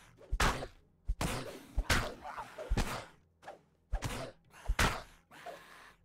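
A man speaks close to a headset microphone in short bursts.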